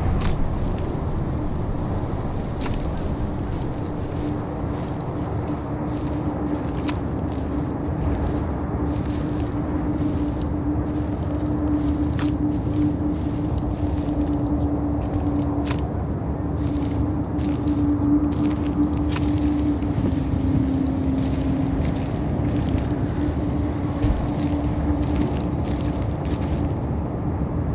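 Footsteps tread steadily through grass and over rough ground.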